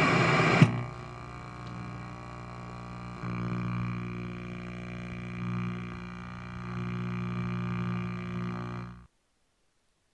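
Electronic static buzzes and hums steadily.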